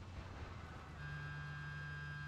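A vehicle engine hums steadily nearby.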